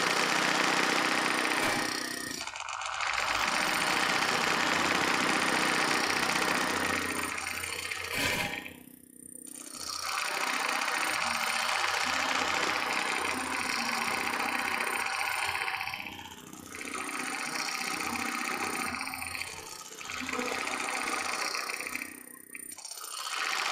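A drilling tool whirs with a loud, harsh hiss, stopping briefly now and then.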